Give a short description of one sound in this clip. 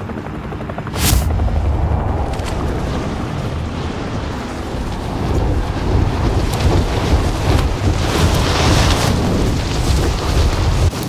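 Wind rushes loudly past as the player falls at speed.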